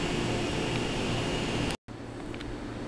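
A parked train hums steadily close by.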